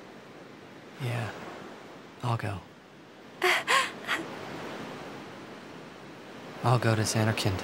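A young man answers briefly.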